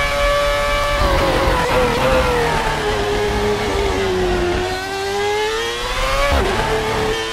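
A racing car engine drops in pitch as the car brakes for a corner, then climbs again.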